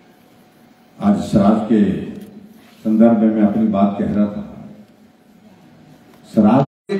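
An elderly man speaks into a microphone over a loudspeaker in an echoing hall, with pauses.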